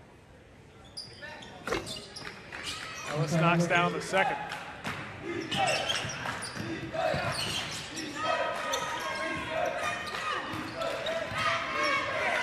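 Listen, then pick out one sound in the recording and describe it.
A crowd cheers and murmurs in a large echoing gym.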